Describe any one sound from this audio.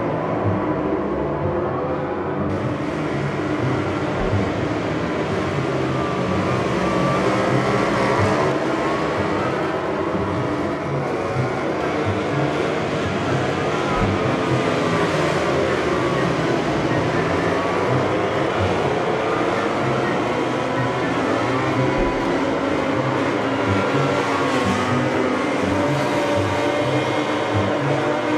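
Racing motorcycle engines whine loudly and steadily, rising and falling in pitch as riders shift gears.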